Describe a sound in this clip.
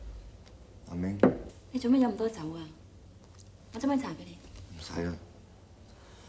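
A woman speaks calmly and softly nearby.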